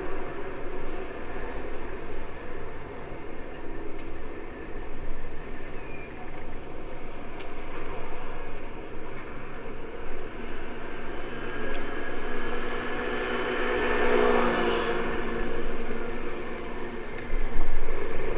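Bicycle tyres hum along a smooth road.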